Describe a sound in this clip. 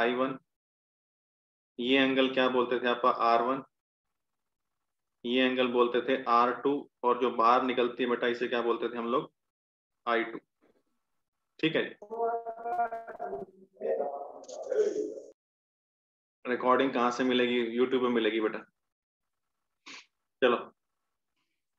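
A man speaks steadily into a close microphone, explaining.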